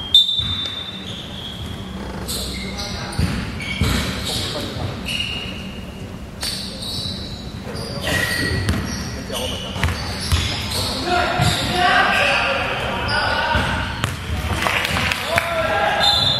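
Sneakers squeak sharply on a hardwood court in a large echoing hall.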